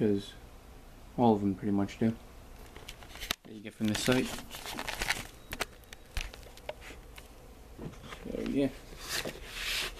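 Playing cards rustle and click as they are handled close by.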